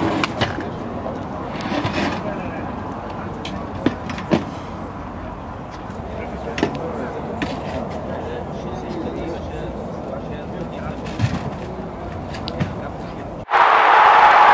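Men talk quietly nearby outdoors.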